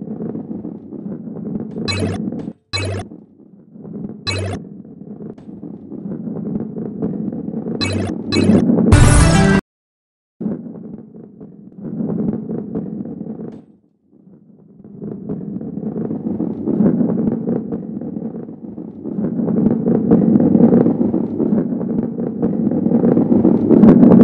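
A heavy ball rolls along a wooden track with a low, rumbling sound that swells and fades.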